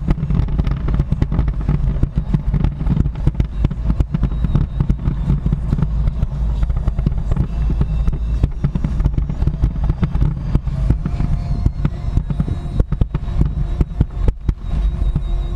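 Fireworks crackle and bang in the distance, in rapid bursts.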